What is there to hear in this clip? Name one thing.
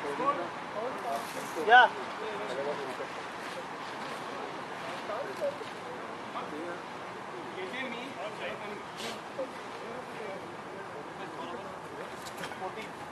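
Men call out and chatter at a distance outdoors.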